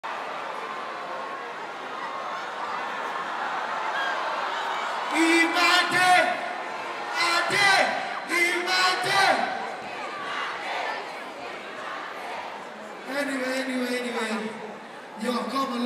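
A crowd cheers and screams in a large hall.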